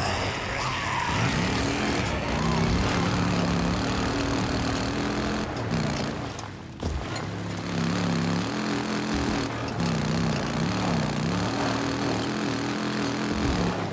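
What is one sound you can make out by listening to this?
A motorcycle engine revs and roars as the bike rides over rough ground.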